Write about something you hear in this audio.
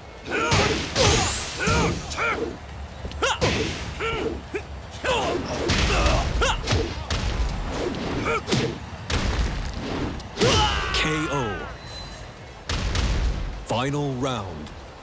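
Heavy punches and kicks land with sharp, repeated thuds and cracks.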